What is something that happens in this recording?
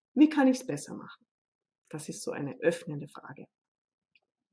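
A woman speaks calmly into a microphone, as over an online call.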